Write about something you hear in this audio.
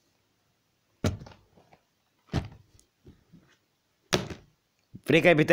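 Plastic game cases are set down with sharp clacks.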